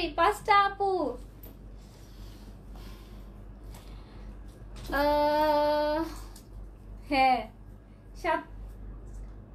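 A young woman sings short, wavering phrases close by.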